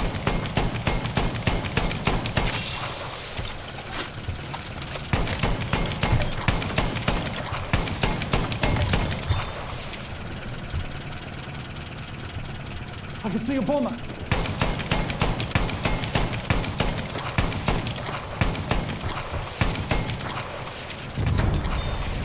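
An anti-aircraft gun fires in rapid bursts.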